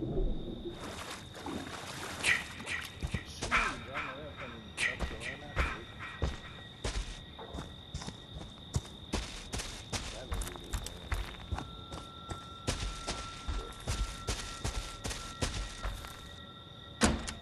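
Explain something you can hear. Heavy footsteps crunch on dry leaves.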